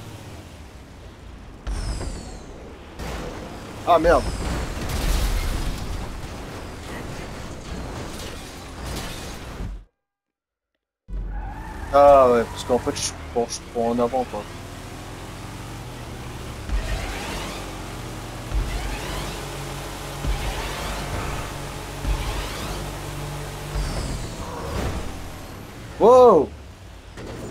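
A car engine roars and revs at high speed.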